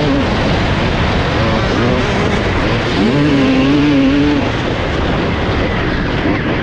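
Wind buffets past close by.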